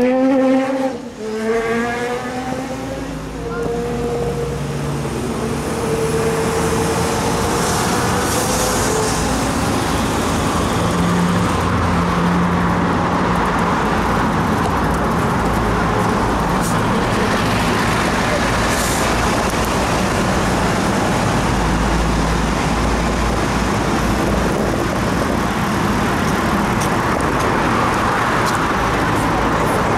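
Wind rushes steadily across the microphone outdoors.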